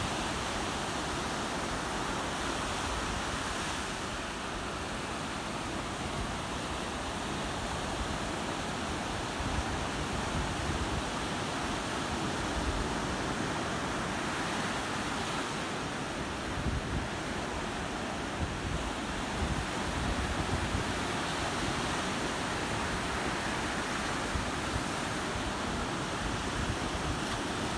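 Small waves break and wash up onto a sandy shore.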